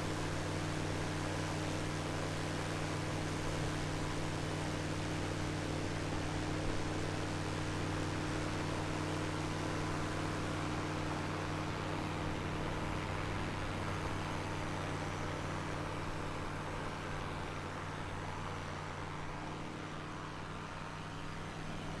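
A small propeller plane's engine drones steadily, slowly fading as the plane flies away.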